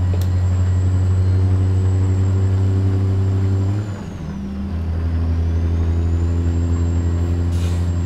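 A truck engine drones steadily, dropping briefly as the gears shift.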